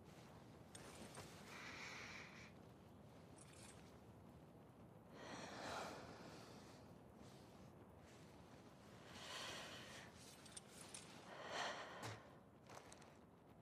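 A young woman sniffs and breathes shakily close by.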